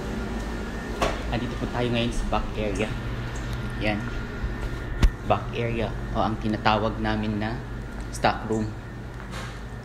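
A young man talks casually, close to a phone microphone.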